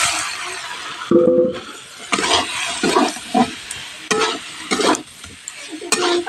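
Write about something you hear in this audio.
A metal spoon scrapes and clatters against a metal pan.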